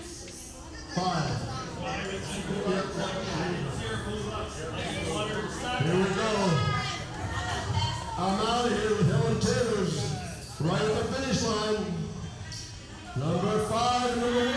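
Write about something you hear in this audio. A middle-aged woman speaks warmly through a microphone in a large hall.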